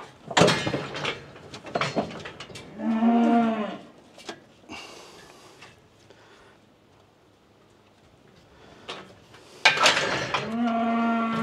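Metal gates clang and rattle as cattle shift.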